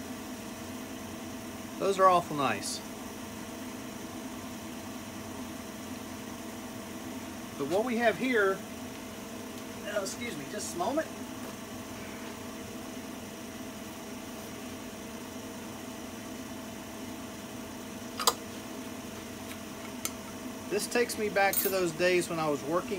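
A wood lathe spins with a steady low hum.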